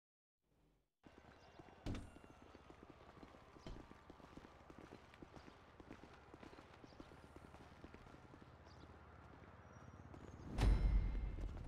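Heavy footsteps walk on a hard floor.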